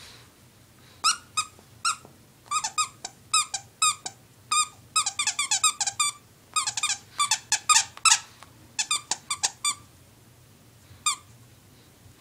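A squeaky plush toy squeaks in quick bursts as a small dog chews it.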